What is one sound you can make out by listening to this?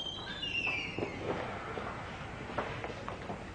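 Footsteps tap across a hard floor indoors.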